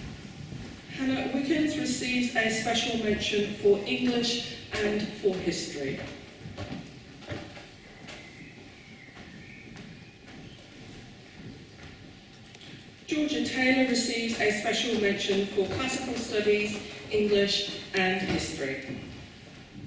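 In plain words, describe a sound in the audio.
A woman speaks calmly into a microphone, heard over loudspeakers in an echoing hall.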